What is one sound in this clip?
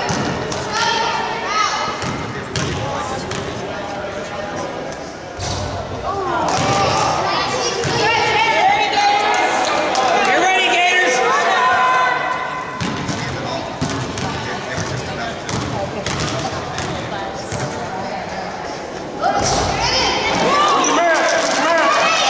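Children and adults shout and cheer in an echoing gym.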